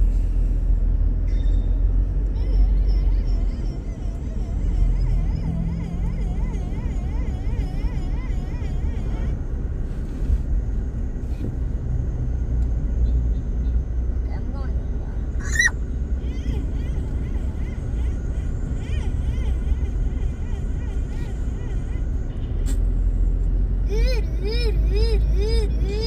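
A car drives steadily along a road, heard from inside with a low rumble.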